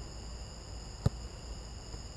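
A soccer ball is kicked with a sharp thud.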